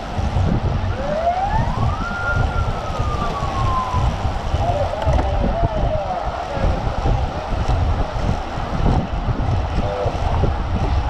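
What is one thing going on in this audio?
Wind buffets loudly across a microphone while riding outdoors.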